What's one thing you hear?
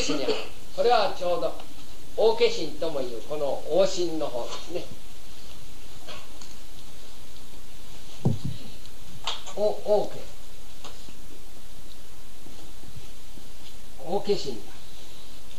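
A man speaks calmly close by, with pauses.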